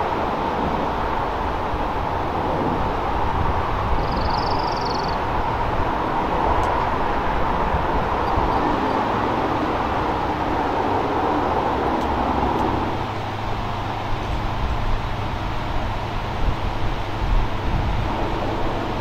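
A diesel locomotive rumbles steadily as a freight train approaches from a distance.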